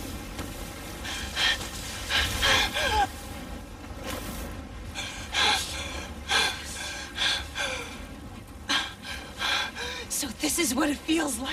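A young woman speaks with wonder, close by.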